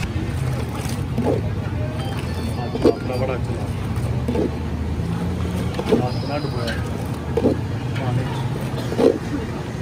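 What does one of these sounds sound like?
A metal scoop clanks against the inside of a metal pot.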